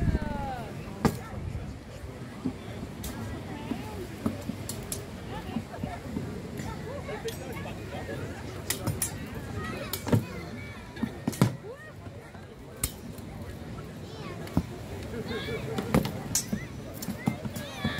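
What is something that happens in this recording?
Wooden weapons clack and knock against shields.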